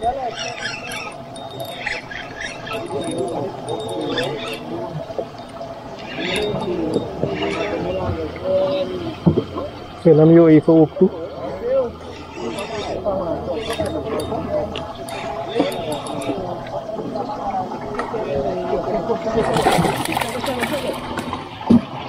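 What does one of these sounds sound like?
Men talk nearby in lively, overlapping voices outdoors on the water.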